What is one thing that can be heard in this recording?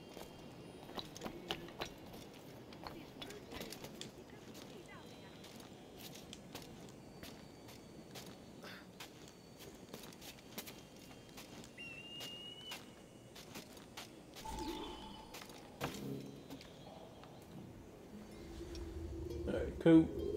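Hands and boots scrape and thud on stone as a climber scales a tower.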